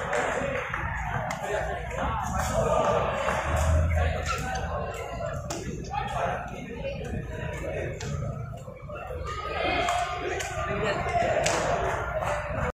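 A crowd of men talks and cheers loudly in a large echoing hall.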